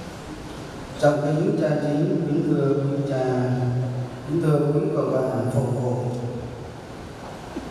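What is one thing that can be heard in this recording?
A middle-aged man speaks calmly into a microphone, heard through loudspeakers in a large echoing hall.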